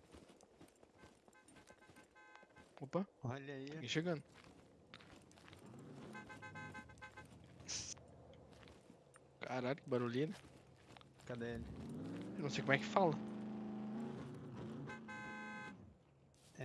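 Footsteps crunch steadily on gravel and grass.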